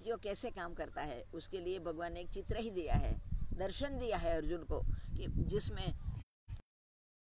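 An elderly woman speaks with animation close to the microphone.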